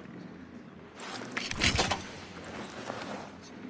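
A door lock rattles and clicks as it is forced.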